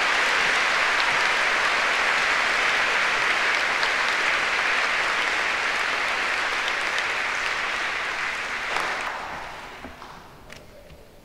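An audience applauds steadily in a large hall and the applause fades away.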